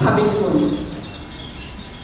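A man speaks to a large room through a microphone.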